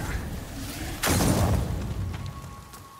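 A burst of fire roars up with a whoosh.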